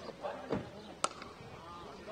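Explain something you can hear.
A cricket bat sharply cracks against a ball.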